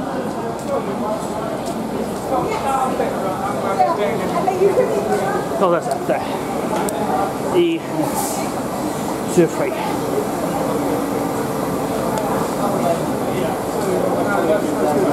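Footsteps shuffle on a hard platform.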